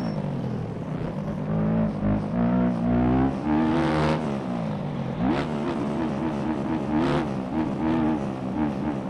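A dirt bike engine revs up and down, rising and falling in pitch.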